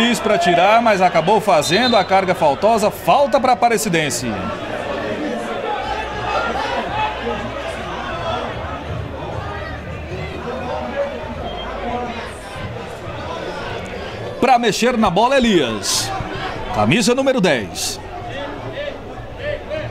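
A small crowd murmurs far off in an open stadium.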